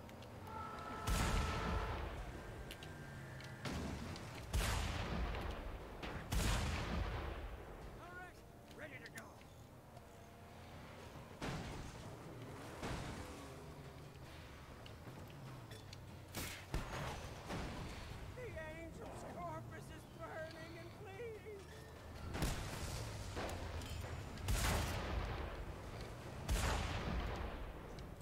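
Loud explosions boom one after another.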